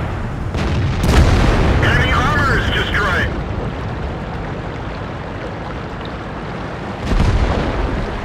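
A cannon shot booms.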